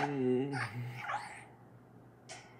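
A short tune plays through small laptop speakers, then goes quiet.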